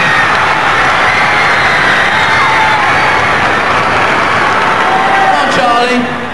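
A large crowd screams loudly and continuously in a big echoing hall.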